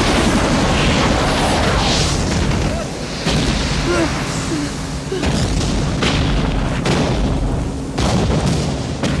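Loud explosions boom and rumble one after another.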